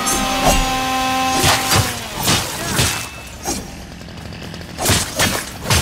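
A chainsaw revs and roars.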